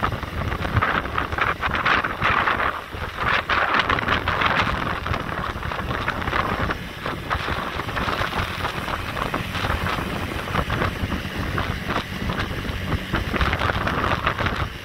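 A vehicle drives steadily along a road.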